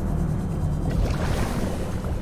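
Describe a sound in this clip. Water bubbles and rushes nearby.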